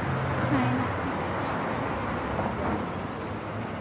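A young woman speaks softly close by, muffled by a face mask.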